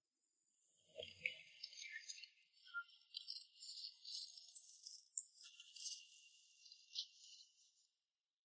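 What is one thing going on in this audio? Plastic balls rustle and clatter as people move through them.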